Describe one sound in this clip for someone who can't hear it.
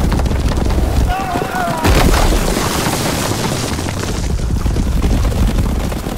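Horses gallop over the ground.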